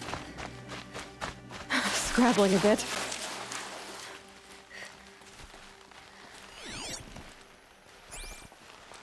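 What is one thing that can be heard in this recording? Footsteps crunch over rocky ground and snow.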